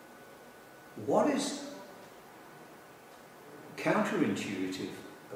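An elderly man speaks calmly and thoughtfully, close by.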